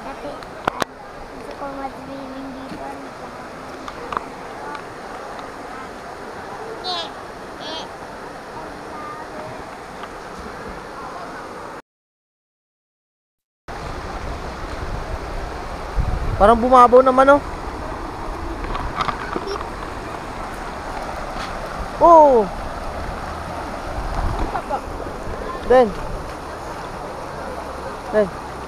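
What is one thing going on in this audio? A river rushes steadily over rocks nearby.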